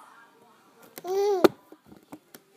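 A baby lets out a short high squeal.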